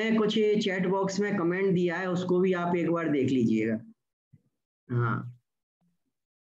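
An elderly man speaks calmly through an online call microphone.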